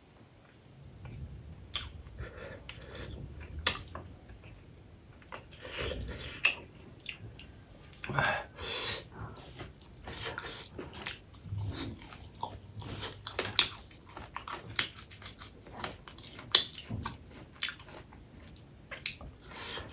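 A man chews food wetly with his mouth close by.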